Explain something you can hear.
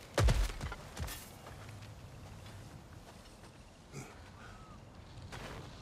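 Footsteps shuffle and scrape on the forest floor.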